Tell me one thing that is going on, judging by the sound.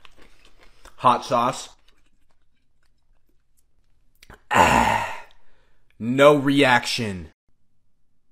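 A young man speaks with animation close up.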